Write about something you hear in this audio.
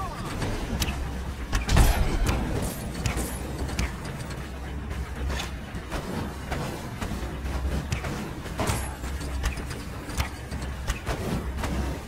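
Flames whoosh and crackle around a flying, burning figure.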